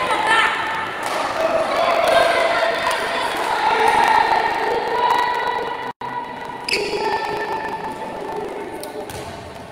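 A handball bounces on a hard indoor court in a large echoing hall.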